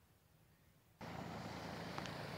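A large fan whirs steadily up close.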